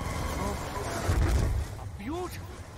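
A deep boom rumbles.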